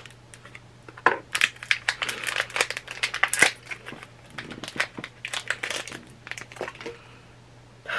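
Plastic packaging crinkles and rustles in a woman's hands.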